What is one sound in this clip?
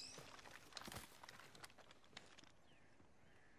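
Leaves rustle as someone pushes through dense bushes.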